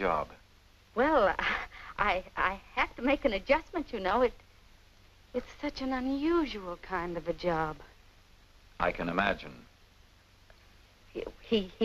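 A woman talks excitedly on the phone.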